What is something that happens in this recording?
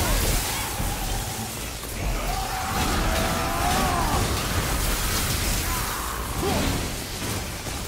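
Magic blasts crackle and roar in bursts.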